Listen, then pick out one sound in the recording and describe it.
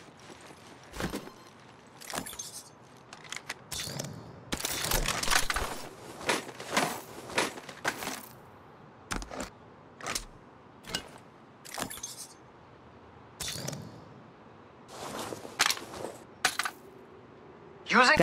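Short clicks and clatters sound as items are picked up and swapped.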